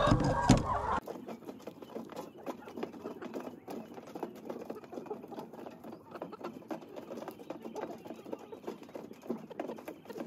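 Many hens cluck and peck close by outdoors.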